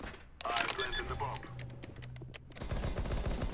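Electronic keys beep rapidly as a device is armed.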